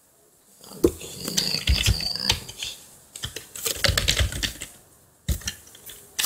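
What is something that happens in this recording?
Keys click as someone types on a keyboard.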